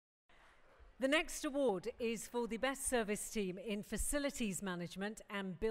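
A woman speaks calmly into a microphone, heard through a loudspeaker.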